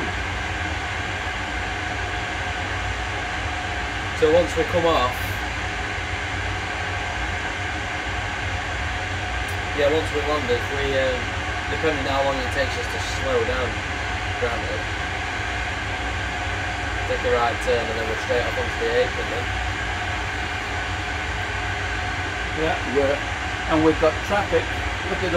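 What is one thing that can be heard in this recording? A steady low hum drones throughout.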